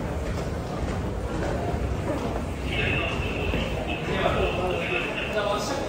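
Footsteps shuffle on a hard floor as a crowd walks.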